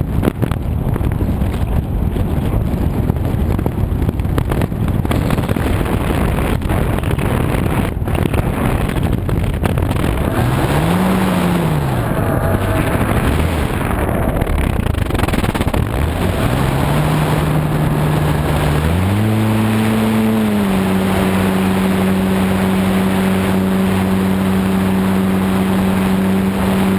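Wind rushes loudly past a small model plane in flight.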